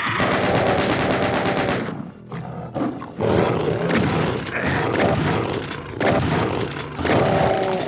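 Monsters growl and roar loudly.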